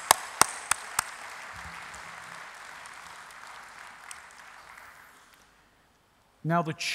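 An audience applauds in a large hall and the clapping fades away.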